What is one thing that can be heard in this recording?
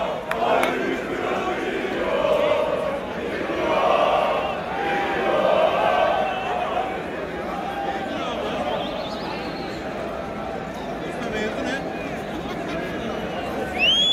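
A crowd of people chatters and murmurs nearby.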